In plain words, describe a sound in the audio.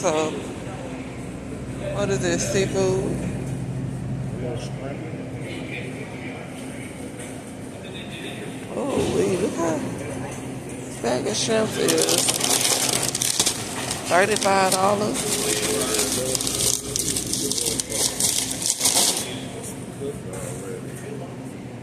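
A refrigerated freezer case hums steadily.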